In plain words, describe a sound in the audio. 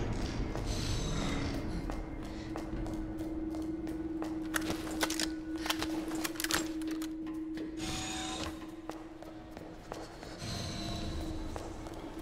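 Footsteps tap along a hard floor.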